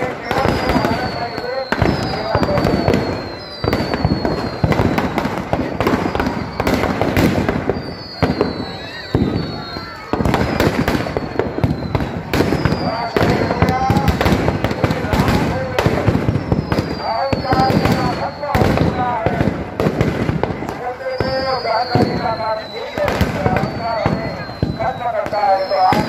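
Firecrackers crackle and pop rapidly.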